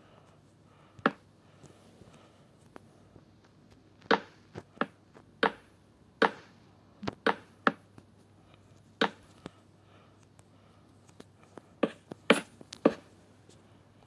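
Wooden blocks thud as they are placed one after another.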